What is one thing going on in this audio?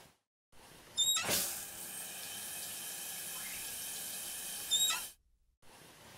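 Water sprays from a shower head.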